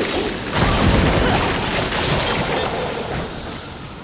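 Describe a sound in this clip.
A burst of fire roars out.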